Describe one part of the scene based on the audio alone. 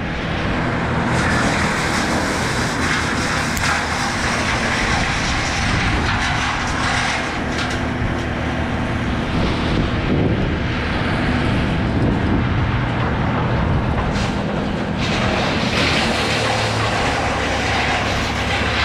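Wind rushes and buffets loudly over a climber's helmet.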